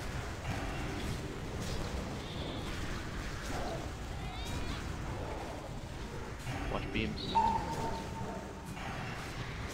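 Magic spells crackle and burst in a video game fight.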